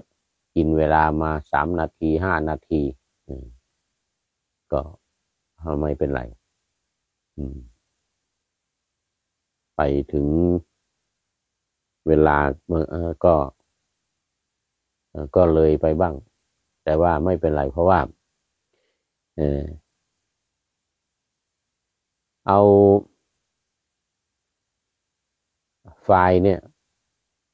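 A middle-aged man speaks calmly and slowly into a close microphone, with long pauses.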